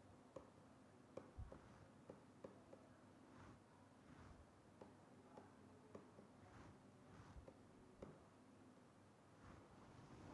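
A pen taps and scratches softly on a writing surface.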